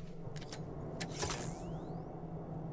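A stun baton crackles with a short, sharp electric burst.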